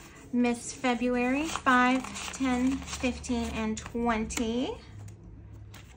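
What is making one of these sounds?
Paper banknotes rustle as they are handled.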